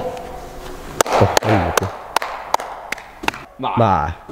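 A young man claps his hands.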